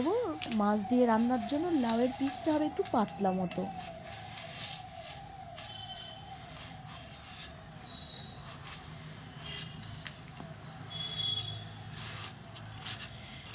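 A vegetable is sliced against a blade with soft cutting scrapes.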